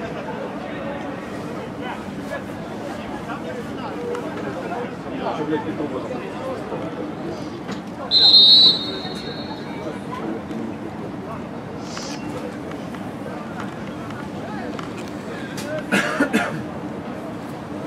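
A small crowd murmurs in an open stadium.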